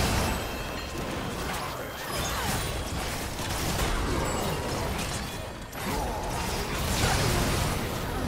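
Magic blasts and clashing weapons crackle and boom in a fast video game fight.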